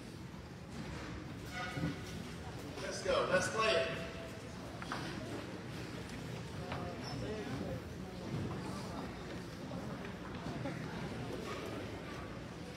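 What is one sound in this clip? A man speaks over a loudspeaker in a large echoing hall.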